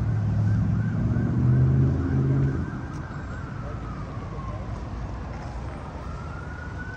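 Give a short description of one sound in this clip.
A police siren wails nearby, warbling and then gliding slowly.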